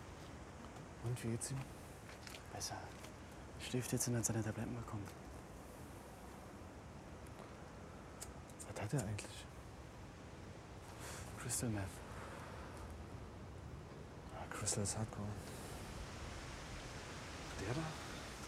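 Men talk quietly in low voices at a distance.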